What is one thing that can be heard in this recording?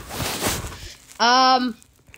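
Soft plush toys rustle as they are handled up close.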